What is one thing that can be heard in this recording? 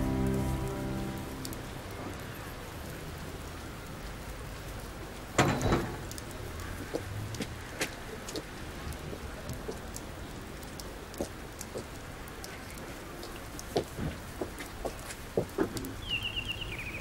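Footsteps scuff and tap on a hard path.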